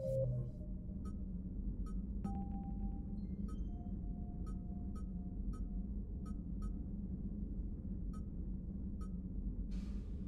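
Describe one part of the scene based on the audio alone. Short electronic menu beeps tick as a list is scrolled.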